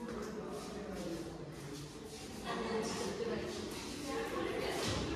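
A young woman talks close by in an echoing room.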